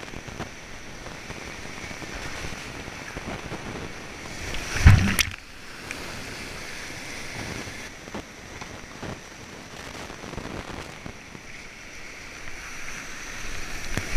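A paddle splashes into the water.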